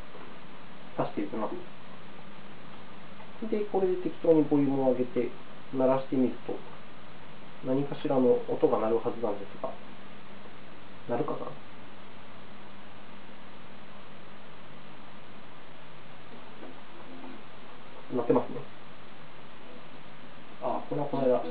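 A young man talks calmly and close by, in short bursts with pauses.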